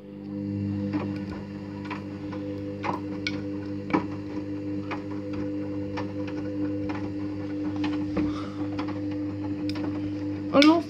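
A washing machine drum knocks softly at a regular pace.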